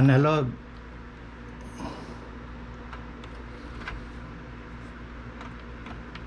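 A cable plug clicks into a socket.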